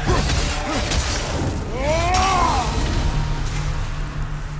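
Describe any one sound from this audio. Magical blasts whoosh and crackle in a fight.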